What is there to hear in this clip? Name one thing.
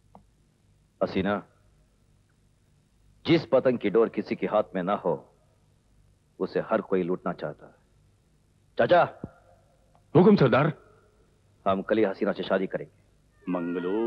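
A man speaks tensely and firmly, close by.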